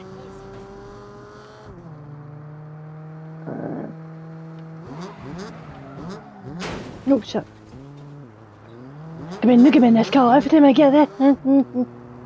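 A car engine hums steadily and shifts gears.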